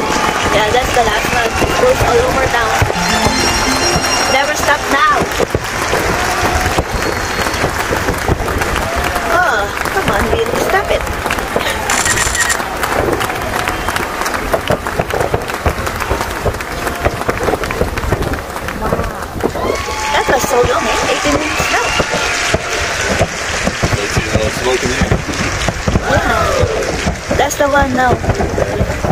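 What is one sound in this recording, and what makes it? Fireworks burst and crackle in the distance.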